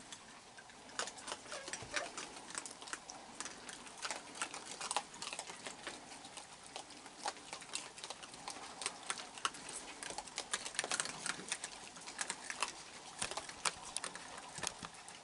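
Raccoons crunch and chew food close by.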